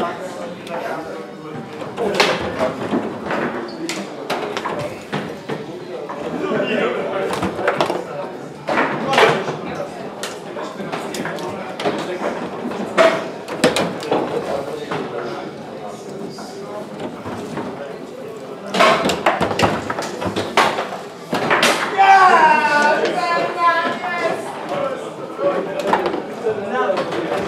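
Foosball rods rattle and thump as players spin and slide them.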